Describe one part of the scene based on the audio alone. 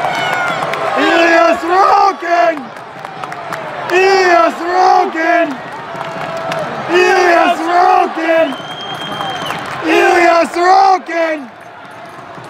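A crowd chants in a rhythm, pausing between chants.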